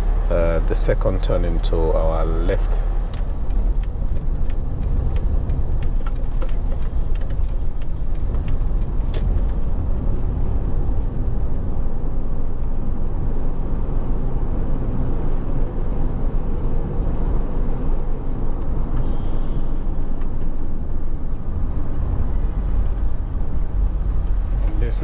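A car rumbles low and steady as it drives along a road.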